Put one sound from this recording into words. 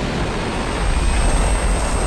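A spaceship engine roars close by.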